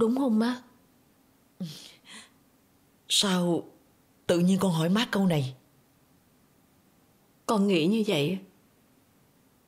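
An older woman speaks emotionally, close by.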